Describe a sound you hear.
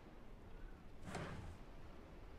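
A locked door handle rattles.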